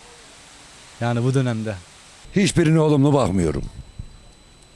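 An elderly man speaks into a microphone up close.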